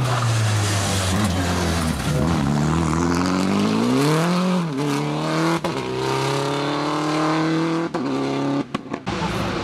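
A rally car engine roars and revs hard through its gears as the car speeds past and away.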